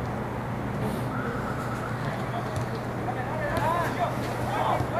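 Players shout to one another across an open field outdoors.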